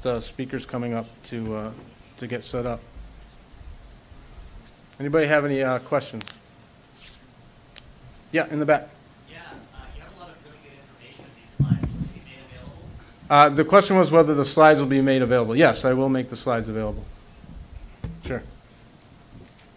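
A man speaks into a microphone in a large hall, pausing between phrases.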